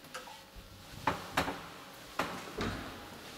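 A door is pushed open with a clunk.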